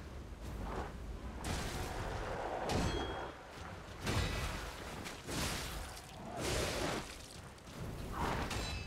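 A large creature growls and roars.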